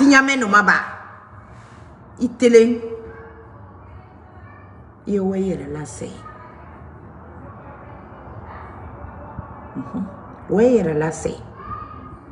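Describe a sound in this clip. A woman speaks emphatically, in short bursts, close to a microphone.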